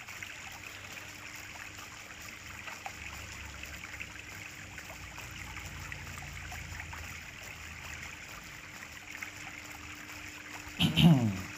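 An animal's paws patter softly over dry leaves.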